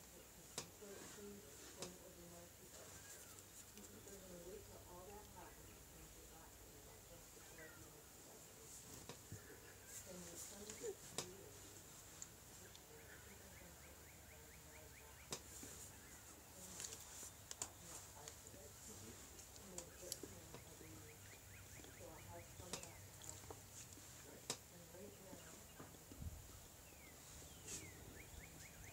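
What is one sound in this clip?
Small clicks and taps sound from hands working a small object.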